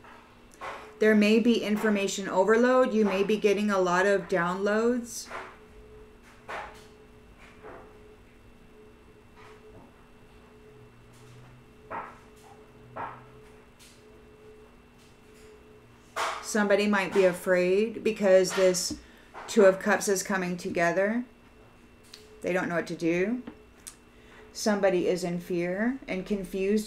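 A woman speaks calmly and closely into a microphone, pausing now and then.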